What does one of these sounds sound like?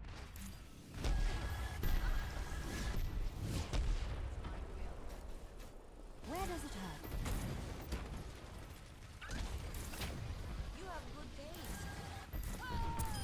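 Gunfire crackles rapidly.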